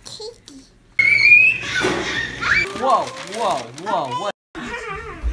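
A toddler babbles and squeals excitedly close by.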